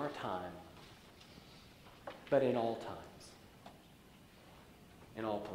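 A man speaks slowly into a microphone in a large echoing room.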